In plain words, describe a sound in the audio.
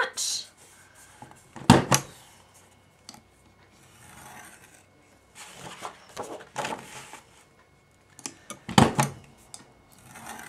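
A tool scrapes and rubs across paper.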